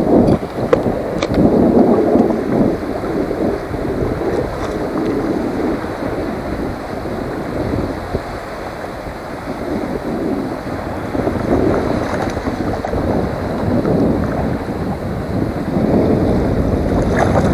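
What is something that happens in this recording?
Water laps and splashes against a small boat.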